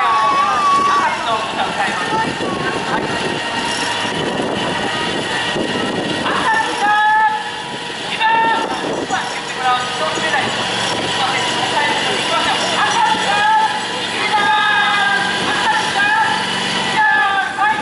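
A small rail tug's motor drones steadily.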